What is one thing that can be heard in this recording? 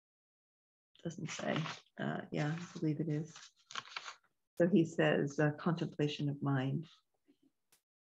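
An older woman speaks calmly and close, heard through a microphone.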